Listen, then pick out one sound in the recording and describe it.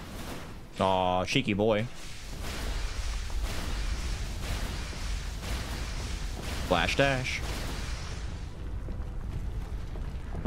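Swords slash and clang in quick strikes.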